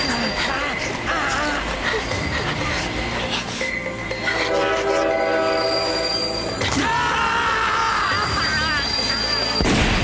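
A man shouts in distress.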